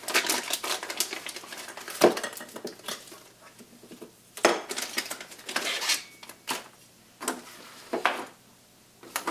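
Plastic bags crinkle and rustle as hands handle them.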